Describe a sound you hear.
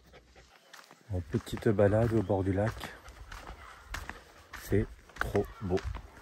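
A young man speaks calmly close to the microphone.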